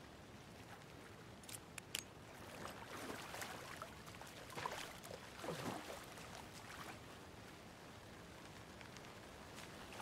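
Footsteps crunch softly on the forest floor.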